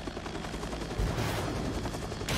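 Rockets launch with a loud whoosh.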